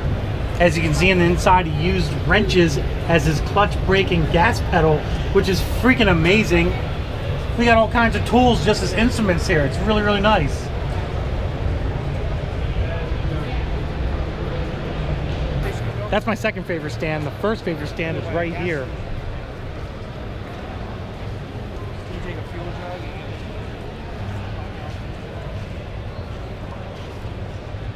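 A crowd murmurs in the distance in a large echoing hall.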